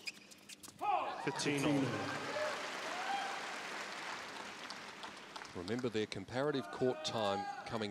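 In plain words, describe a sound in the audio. A large crowd cheers and applauds loudly.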